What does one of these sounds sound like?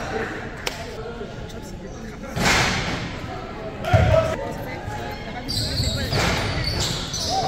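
A man shouts from the sideline.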